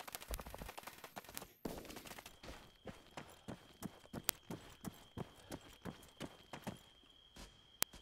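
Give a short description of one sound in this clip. Footsteps crunch steadily over grass and dirt.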